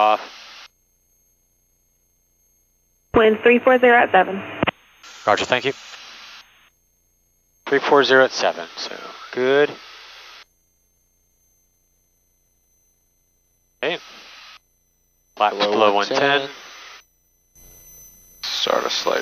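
A young man speaks calmly over a headset intercom.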